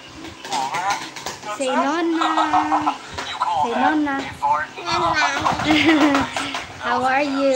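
A little girl chatters in a high voice.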